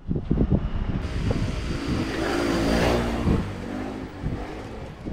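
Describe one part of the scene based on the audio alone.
A motorcycle engine rumbles as it passes close by.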